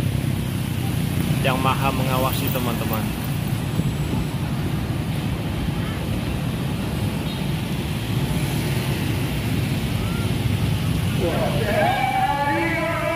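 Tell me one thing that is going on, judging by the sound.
Traffic rumbles steadily along a busy road outdoors.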